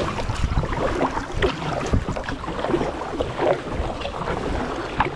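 Water ripples and laps against a kayak's hull.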